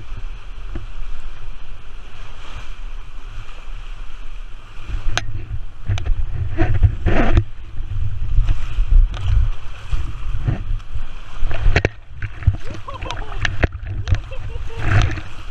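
Water rushes and splashes along a slide beneath a rider's tube.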